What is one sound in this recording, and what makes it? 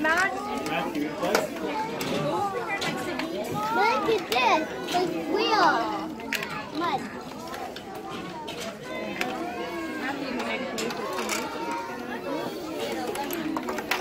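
Plastic toy trucks clatter and scrape on the floor.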